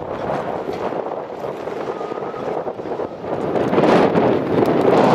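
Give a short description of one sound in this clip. Strong wind gusts outdoors and buffets loudly.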